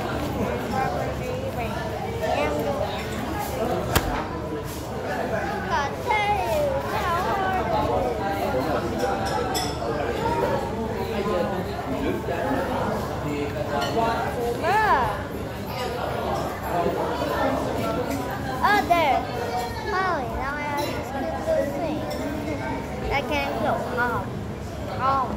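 A young boy talks close by, with animation.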